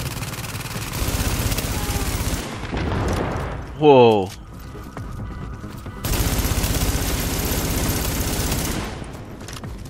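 Rapid automatic gunfire rattles in long bursts.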